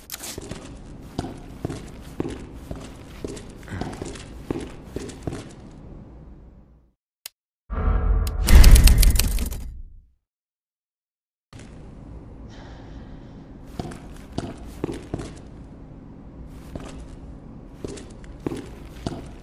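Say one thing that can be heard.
Footsteps tap on a hard floor indoors.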